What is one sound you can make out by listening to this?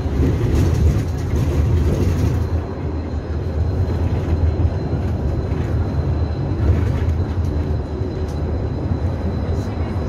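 Cars rush past outside on the highway.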